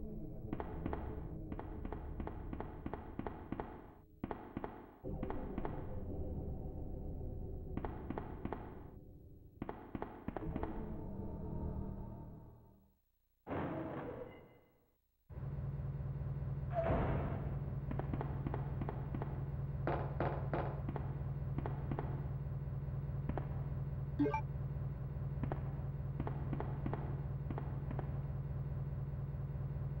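Footsteps tap steadily on a hard floor.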